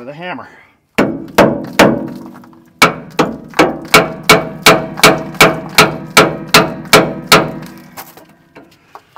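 A hammer strikes metal in quick, ringing blows.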